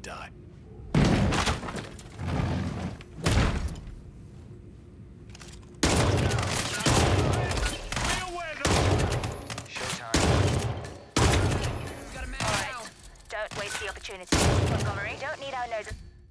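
Gunshots fire loudly in an echoing room.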